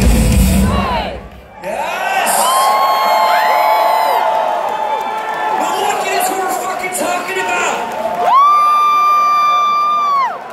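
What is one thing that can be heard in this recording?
A man sings loudly into a microphone through loudspeakers, holding long notes.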